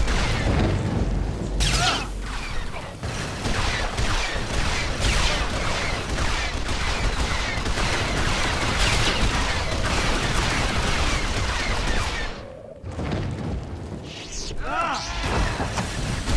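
Lightsabers hum and clash.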